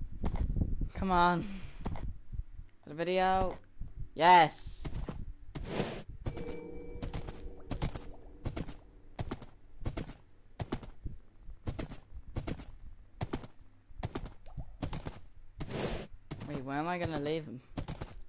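A horse whinnies loudly several times.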